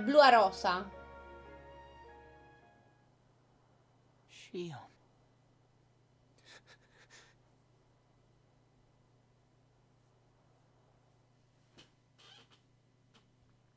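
A young woman talks and exclaims with animation, close to a microphone.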